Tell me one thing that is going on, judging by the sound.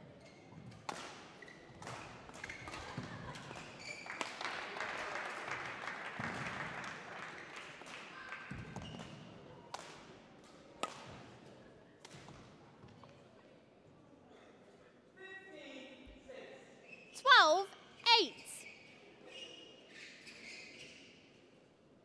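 Shoes squeak and shuffle on a court floor.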